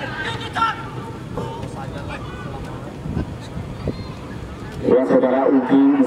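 Young men shout to each other outdoors across an open field.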